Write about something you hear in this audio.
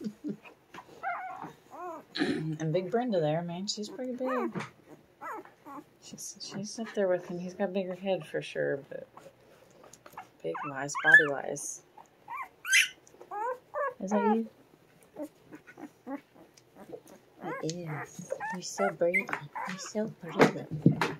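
Newborn puppies squeak and whimper close by.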